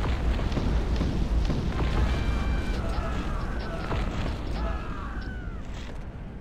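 Buildings collapse with a heavy crash.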